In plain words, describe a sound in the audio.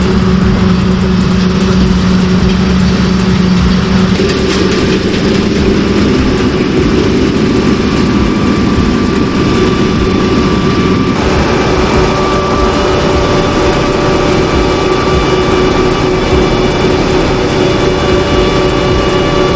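A diesel combine harvester drones as it works through a field.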